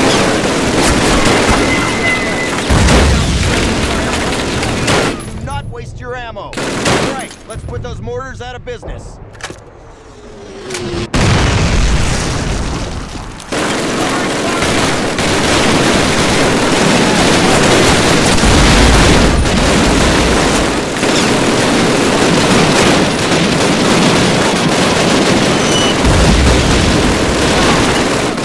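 A rifle fires loud, sharp shots one at a time.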